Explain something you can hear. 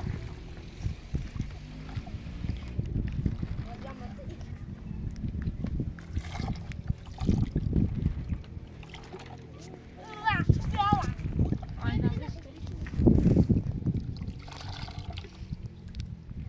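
Water splashes and sloshes in a basin as dishes are washed by hand.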